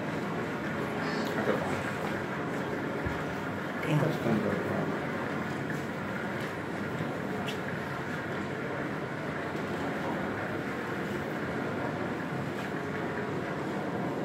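A stormy sea roars steadily through loudspeakers.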